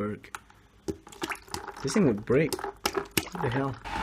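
Water sloshes in a bucket as a hand stirs it.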